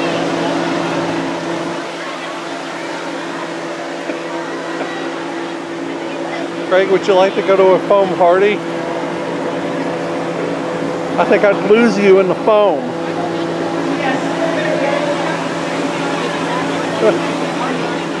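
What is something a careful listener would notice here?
A crowd chatters outdoors in the background.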